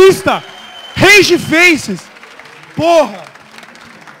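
A young man shouts with animation through a microphone in a large hall.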